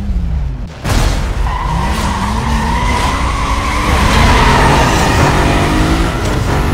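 A car engine revs high, then roars as the car speeds away.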